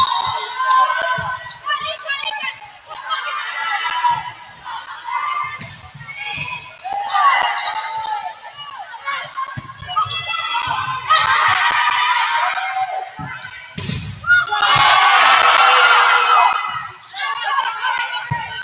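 A volleyball is struck with sharp thumps.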